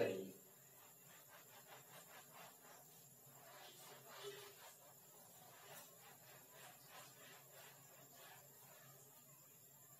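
A cloth rubs across a chalkboard.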